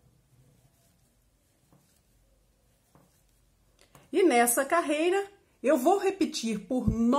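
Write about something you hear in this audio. Knitting needles click softly against yarn.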